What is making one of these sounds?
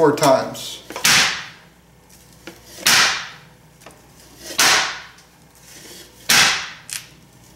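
A metal baking tray bangs down on a hard counter several times.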